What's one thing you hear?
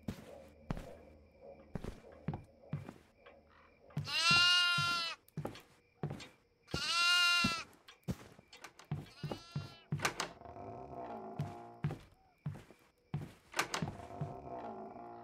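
Footsteps thud slowly on creaky wooden floorboards.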